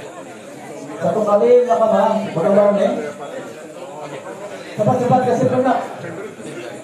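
A man speaks loudly close by in short bursts.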